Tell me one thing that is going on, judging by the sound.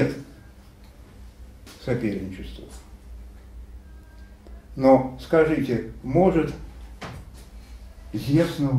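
An elderly man speaks with animation nearby, pausing between phrases.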